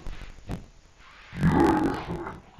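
A young man talks loudly indoors.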